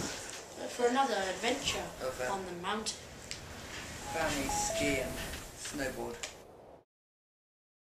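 Two young boys talk with animation close by.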